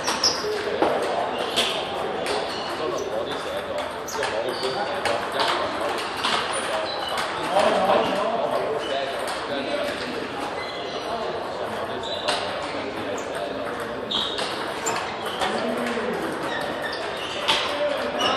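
Ping-pong balls click against paddles and tables in a large echoing hall.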